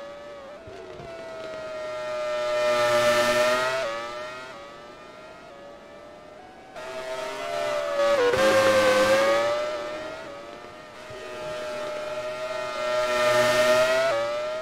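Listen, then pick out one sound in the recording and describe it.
A racing car engine screams at high revs as it passes close by and fades away.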